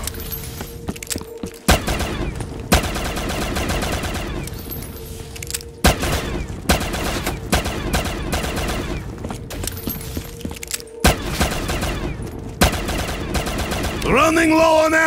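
A pistol fires in rapid shots.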